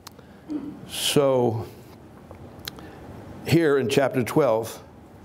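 A man speaks calmly through a microphone in a room with some echo.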